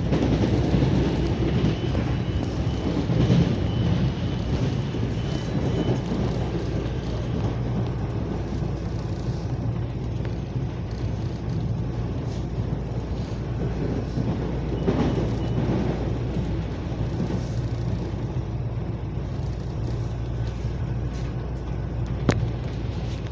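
A train rumbles steadily along the rails with a low drone.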